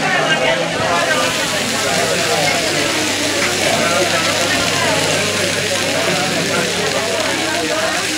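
Dry rice pours into a pan with a steady hiss.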